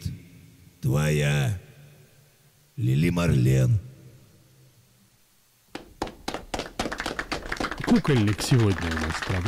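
A man sings into a microphone close by.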